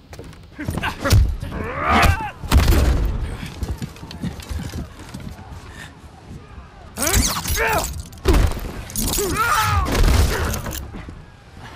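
Heavy blows land hard in a scuffle.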